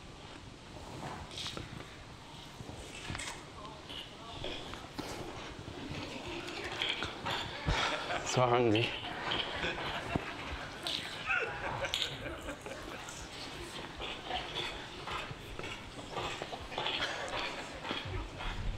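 A young woman whispers softly, close to a microphone.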